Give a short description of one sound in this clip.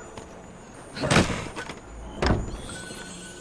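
A wooden chest lid thumps open.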